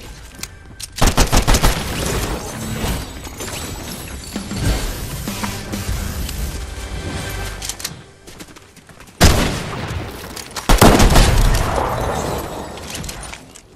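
Rapid gunshots ring out in a video game.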